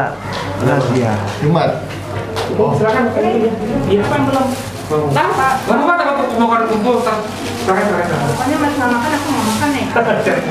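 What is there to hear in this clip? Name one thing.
Several adults talk and laugh together nearby.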